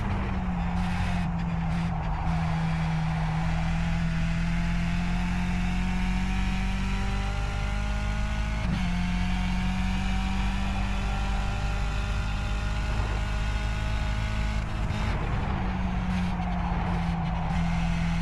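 A racing car engine roars steadily, rising in pitch as it speeds up and shifting gears.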